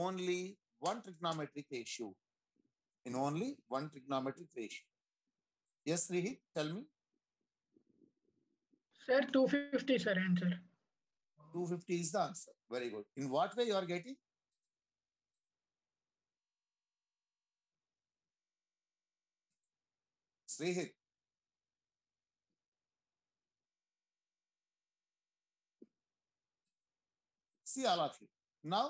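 A man speaks calmly through a microphone on an online call, explaining in short bursts with pauses.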